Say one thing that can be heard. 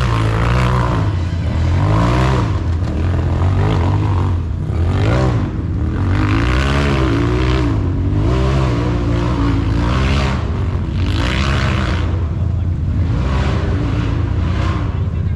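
An off-road vehicle's engine revs hard, its pitch rising and falling again and again.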